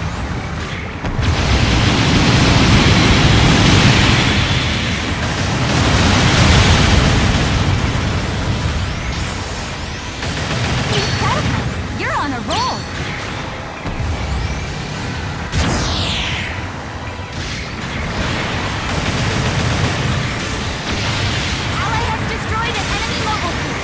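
Thrusters roar steadily.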